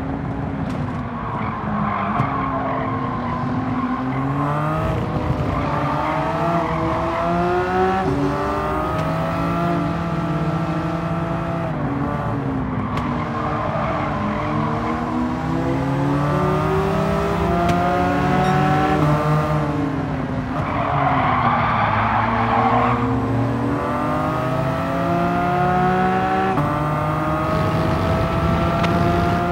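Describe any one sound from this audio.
A racing car engine revs high, rising and falling as it shifts gears.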